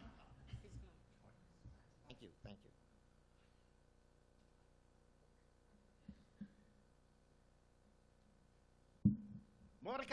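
An elderly man speaks haltingly into a microphone.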